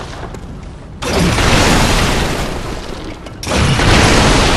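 Wooden crates and barrels smash apart.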